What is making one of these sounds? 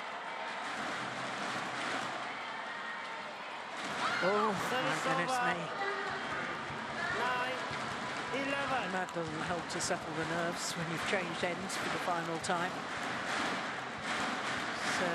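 A large indoor crowd murmurs in an echoing hall.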